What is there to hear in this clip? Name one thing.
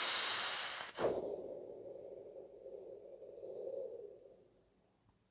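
A man exhales a long breath of vapour.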